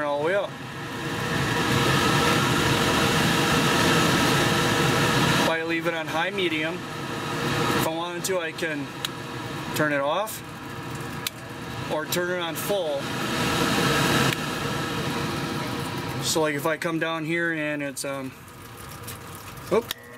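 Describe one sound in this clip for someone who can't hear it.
A blower fan hums and whooshes, its speed rising and falling.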